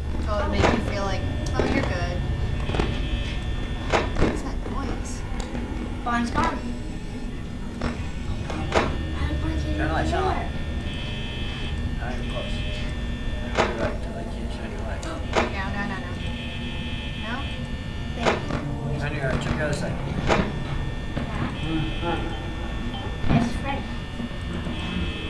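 A low steady hum runs throughout.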